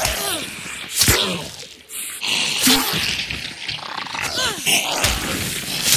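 Heavy blows thud and smack into flesh.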